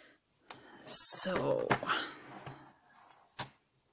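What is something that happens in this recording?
A cardboard box slides across a table.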